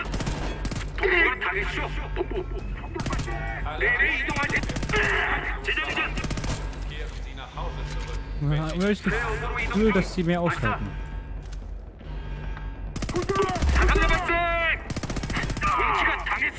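Rapid gunfire cracks in short bursts.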